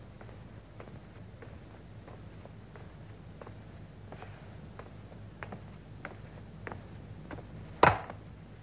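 Footsteps walk steadily along a hallway.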